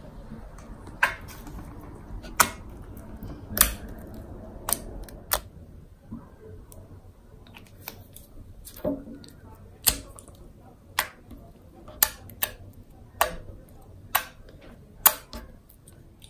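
Soft slime squishes and pops under fingers.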